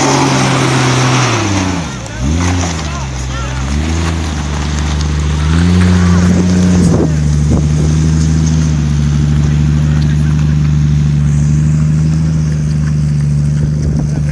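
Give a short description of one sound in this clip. An engine rumbles and revs up and down as a vehicle crawls over rock.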